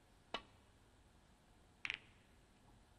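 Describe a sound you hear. A snooker cue strikes a ball with a sharp click.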